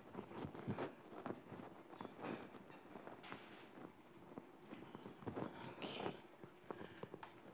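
A cloth wipes and rubs across a chalkboard.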